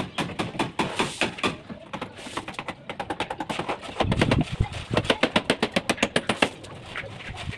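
A hammer chips rapidly at brick and plaster.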